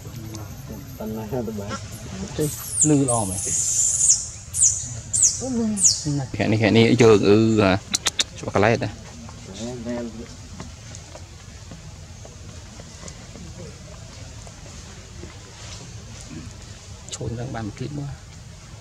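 A baby monkey squeals and cries nearby.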